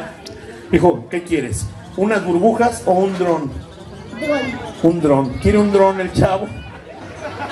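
A boy speaks loudly nearby, reciting outdoors.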